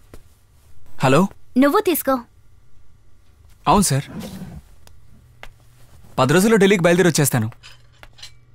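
A young man speaks loudly and urgently nearby.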